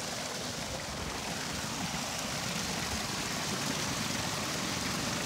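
Water rushes and splashes steadily over a turning water wheel.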